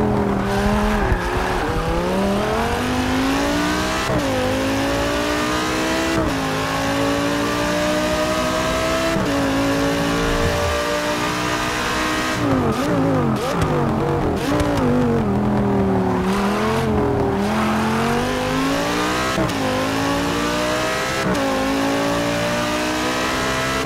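A race car engine roars, revving up through the gears and dropping as it brakes.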